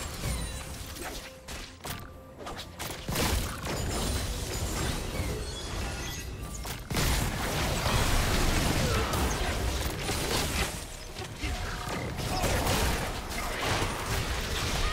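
Magic spells crackle and blast in a fast battle.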